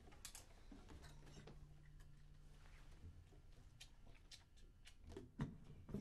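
A guitar is plucked softly.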